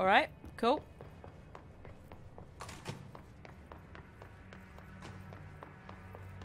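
Quick footsteps run across a hard floor.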